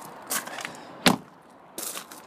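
A car door shuts with a solid thud.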